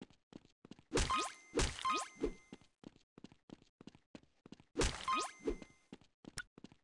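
Short electronic chimes ring out as items are picked up.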